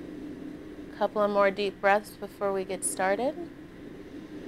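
A young woman speaks nearby, calmly and clearly.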